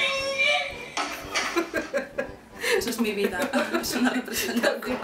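Two young women laugh together close to a microphone.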